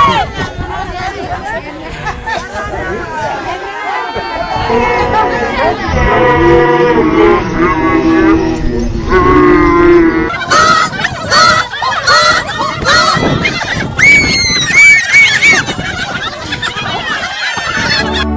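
A group of women sing together in chorus outdoors.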